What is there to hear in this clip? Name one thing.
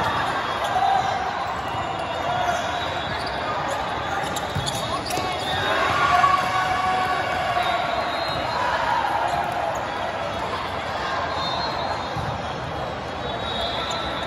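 A crowd chatters and shouts throughout a large echoing hall.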